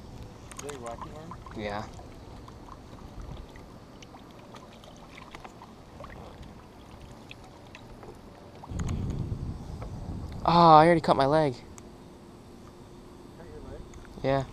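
A fishing reel whirs softly as line is wound in.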